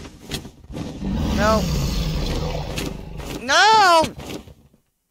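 A large creature growls and roars loudly.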